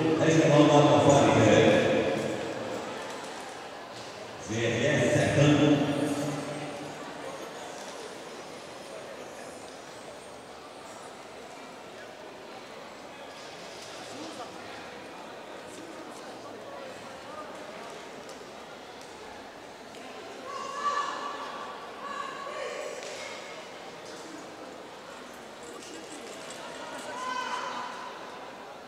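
A drum corps plays a march in a large echoing hall.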